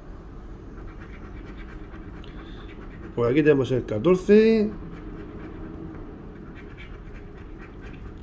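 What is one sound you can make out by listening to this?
A coin scratches briskly across a card.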